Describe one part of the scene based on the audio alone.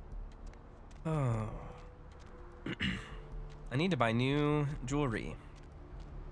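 A man speaks expressively into a close microphone.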